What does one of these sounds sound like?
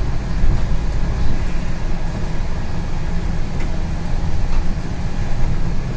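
A bus engine rumbles steadily from inside the bus as it drives along.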